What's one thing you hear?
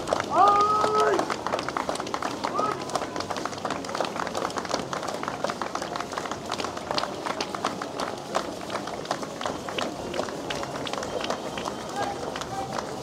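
Many boots march in step on a wet road.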